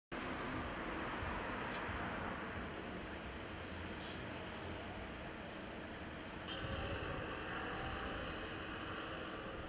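A car engine idles close by with a steady rumbling hum.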